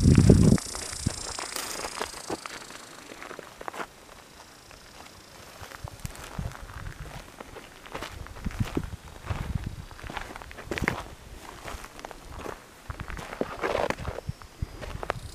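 Footsteps crunch on dry gravel outdoors.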